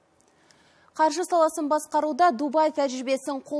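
A young woman speaks clearly and steadily, as if presenting the news through a microphone.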